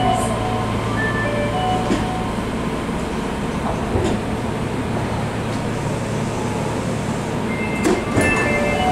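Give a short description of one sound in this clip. A train rumbles and slows to a stop.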